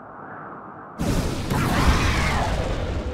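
A loud blast roars and rushes.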